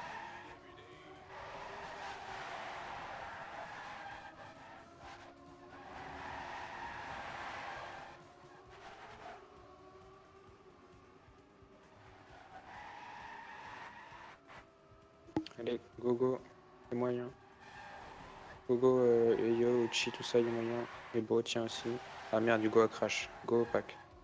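A racing car's engine whines, rising and falling in pitch as it speeds up and slows down.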